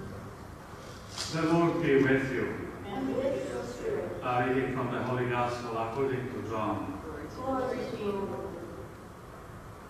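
A man speaks calmly through a microphone in a large echoing hall.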